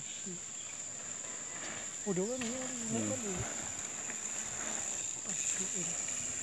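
Bicycle tyres roll over a dirt trail.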